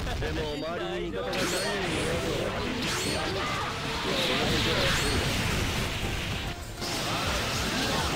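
Spell blasts crackle and clash in a fast fight.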